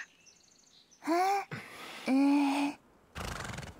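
A young woman speaks softly.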